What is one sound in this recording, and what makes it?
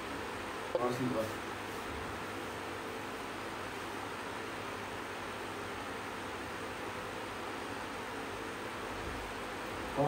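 An electric fan whirs steadily close by.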